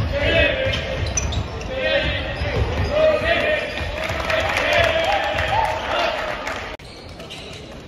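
A group of young men shout and cheer loudly in an echoing hall.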